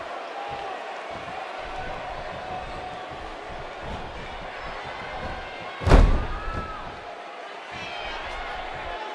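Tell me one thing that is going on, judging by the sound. An arena crowd murmurs and cheers.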